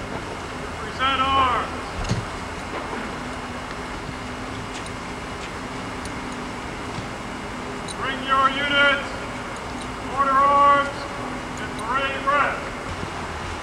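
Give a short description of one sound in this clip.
A man shouts commands loudly outdoors, in short drawn-out calls.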